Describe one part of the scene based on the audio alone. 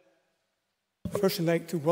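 A man begins speaking into a microphone in a large room.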